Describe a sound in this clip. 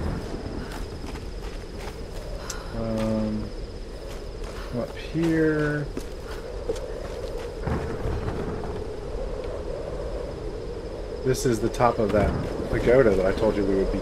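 Footsteps crunch on soft ground.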